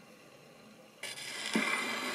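A finger pushes a gramophone's brake lever with a click.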